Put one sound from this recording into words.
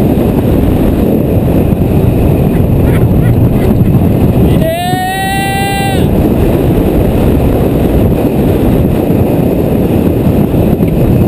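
Strong wind roars past loudly outdoors.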